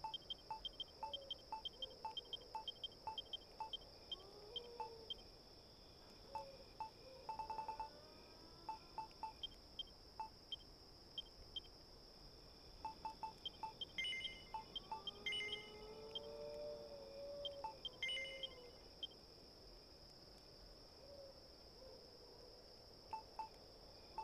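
Short electronic menu blips tick rapidly, one after another.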